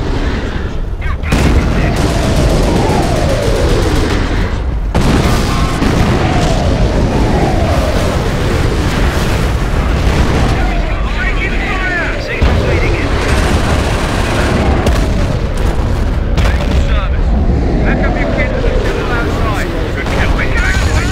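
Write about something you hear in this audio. Gunfire crackles steadily.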